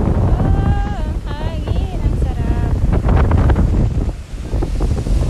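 Waves wash against rocks along the shore.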